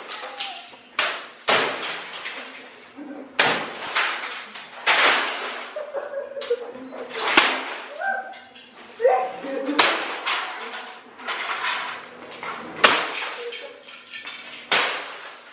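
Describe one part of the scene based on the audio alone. A bat smashes hard against metal and plastic with loud, sharp crashes.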